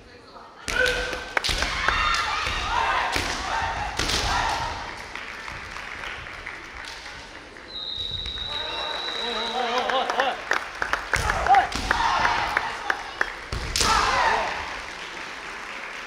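Kendo fighters shout loudly in a large echoing hall.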